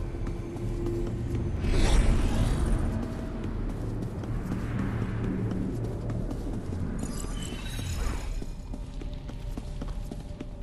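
Quick footsteps patter as a character runs.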